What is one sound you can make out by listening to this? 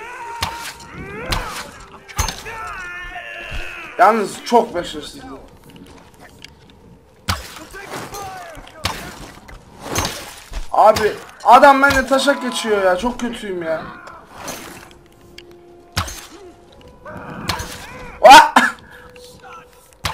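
A bowstring twangs as arrows are shot, again and again.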